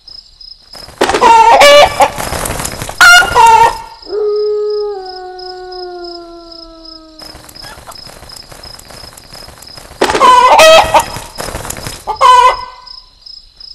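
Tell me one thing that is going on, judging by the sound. A bird squawks loudly and harshly, again and again.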